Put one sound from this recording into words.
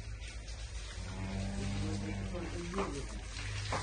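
A cow lows softly nearby.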